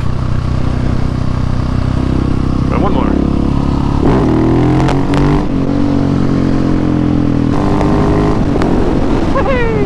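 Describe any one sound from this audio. A motorcycle engine roars steadily, rising and falling in pitch as it revs and shifts gears.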